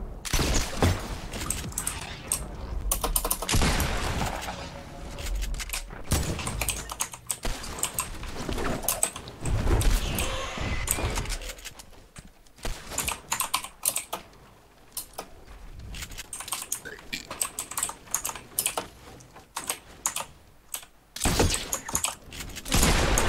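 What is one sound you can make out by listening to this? Wooden walls and ramps snap into place with quick knocking clacks.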